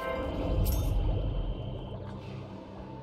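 A bright, triumphant game jingle plays.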